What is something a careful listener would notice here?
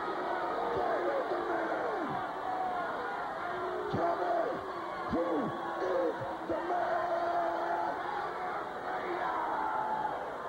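A crowd cheers and yells throughout.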